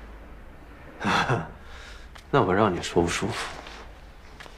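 A young man speaks in a low, suggestive voice.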